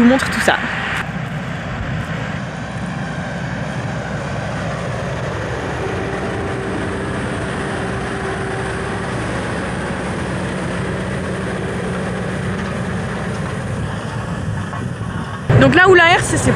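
A tractor engine rumbles steadily nearby.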